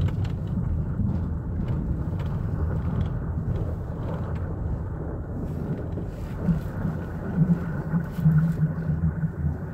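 A car's engine hums, heard from inside the cabin while driving.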